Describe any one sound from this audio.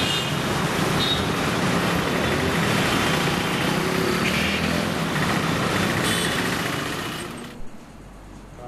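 Traffic roars past on a busy road outdoors.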